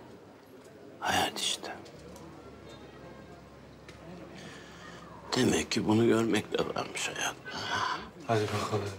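A middle-aged man speaks hoarsely and pleadingly, close by.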